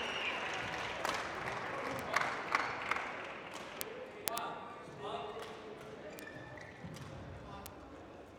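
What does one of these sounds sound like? Rackets strike a shuttlecock back and forth in a quick rally.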